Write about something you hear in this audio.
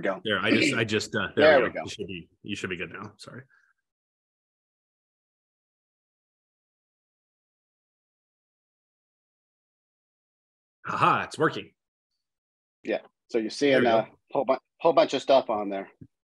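A middle-aged man speaks calmly and with animation through an online call.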